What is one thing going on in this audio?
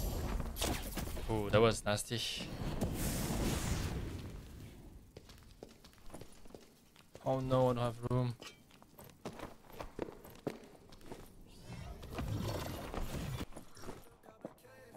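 Footsteps tread on stone floors.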